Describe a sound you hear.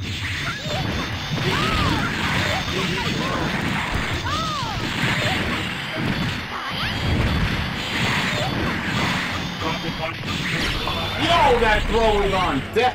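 Fighting game punches and energy blasts crash and thud in quick bursts.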